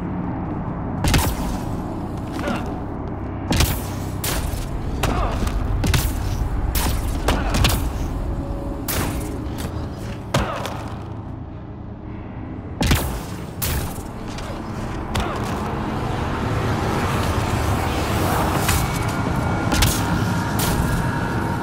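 A jet pack fires with short, loud whooshing bursts.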